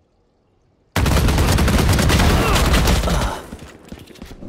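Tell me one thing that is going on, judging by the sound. Rapid gunshots crack loudly and close by.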